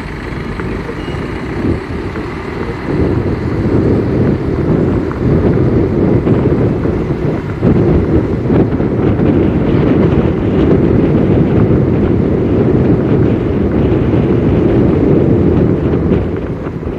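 A car engine hums steadily with tyres rumbling on the road.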